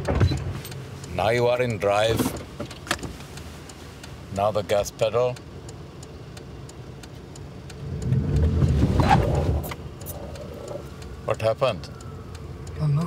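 A middle-aged woman speaks inside a car.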